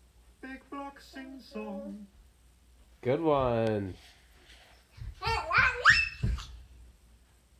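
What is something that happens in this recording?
A young girl sings and squeals nearby.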